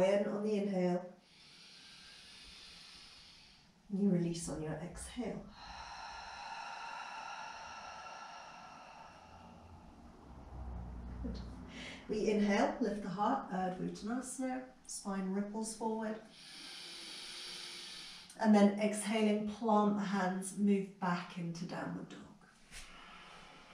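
A woman speaks calmly and clearly close to a microphone, giving instructions.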